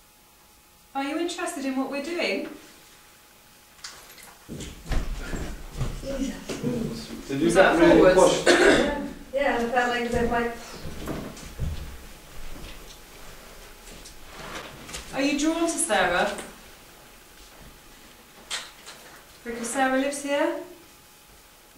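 A woman speaks slowly and calmly.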